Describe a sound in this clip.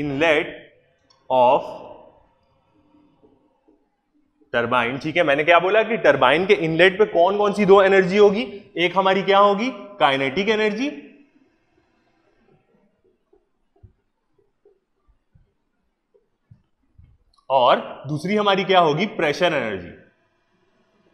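A man speaks calmly and clearly into a close microphone, in bursts with pauses.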